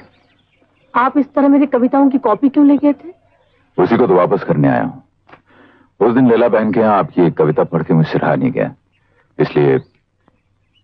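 A young man speaks calmly up close.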